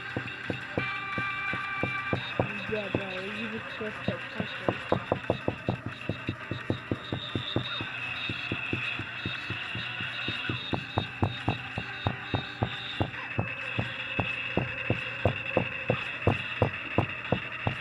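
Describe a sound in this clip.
Electronic dance music plays with a fast, steady drumbeat.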